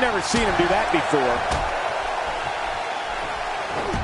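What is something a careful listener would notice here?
Punches land with sharp smacks.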